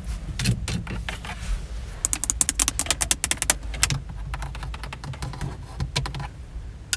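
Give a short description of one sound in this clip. Long fingernails tap and click rapidly on hard plastic buttons.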